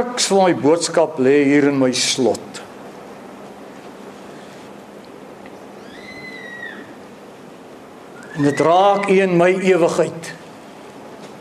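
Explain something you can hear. A middle-aged man preaches with animation through a microphone in an echoing hall.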